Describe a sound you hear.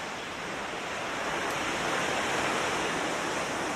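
Waves break and wash onto a shore.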